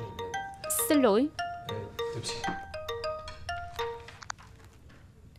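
A phone rings with a tinkling melody.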